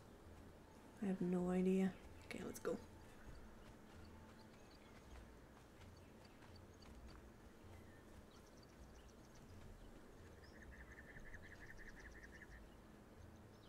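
Footsteps patter softly over grass and stone.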